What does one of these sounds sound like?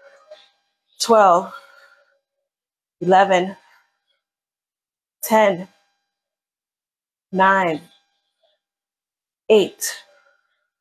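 A woman calls out short words at a steady pace, close by.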